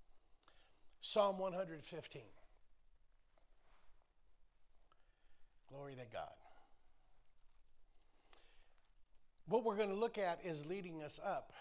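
An older man speaks with animation through a microphone, pausing between phrases.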